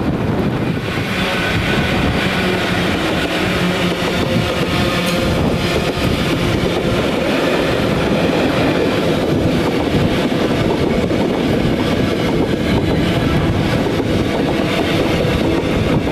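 Freight wagons clatter and squeal over the rails.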